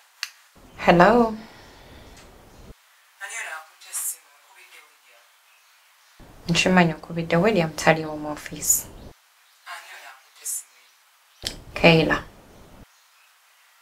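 A young woman talks on a phone close by, in short bursts with pauses.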